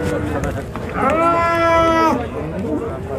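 A cow moos loudly nearby.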